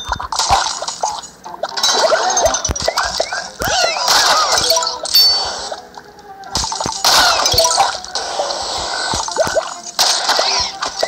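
Cartoon zombies gurgle and squeal in short bursts.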